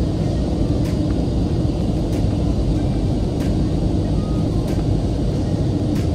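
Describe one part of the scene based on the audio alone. A jet engine roars steadily inside an aircraft cabin.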